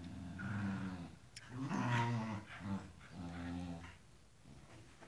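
A dog growls playfully, close by.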